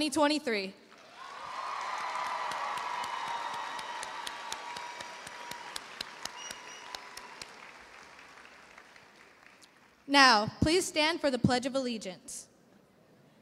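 A young woman speaks clearly through a microphone in an echoing hall.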